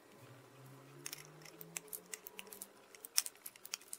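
Wire cutters snip through component leads with sharp clicks.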